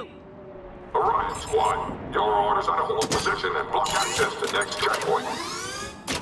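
A mechanical gun turret whirs and clanks as it unfolds.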